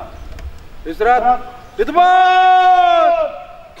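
A man shouts long, drawn-out commands outdoors.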